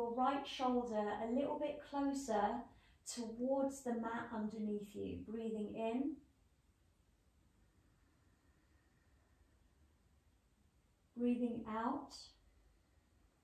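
A woman speaks calmly and slowly, close to a microphone.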